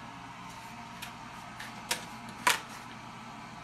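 Utensils clatter against a pan.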